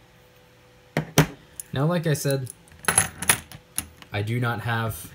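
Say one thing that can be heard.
Coins clink against each other on a hard surface.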